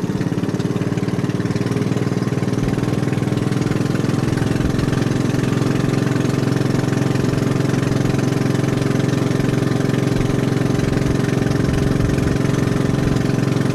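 Water splashes against a moving boat's hull.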